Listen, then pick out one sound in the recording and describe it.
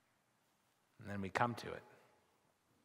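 A middle-aged man speaks briefly through a microphone.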